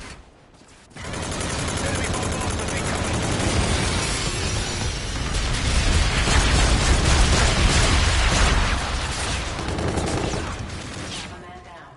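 Automatic gunfire rattles loudly in rapid bursts.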